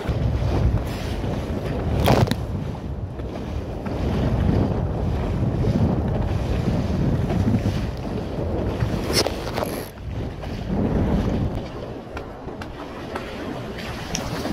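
Water splashes and hisses against a small boat's hull.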